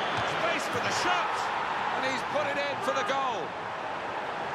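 A large crowd cheers loudly as a goal is scored.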